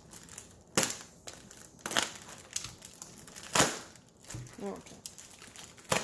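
A knife slices through plastic wrap.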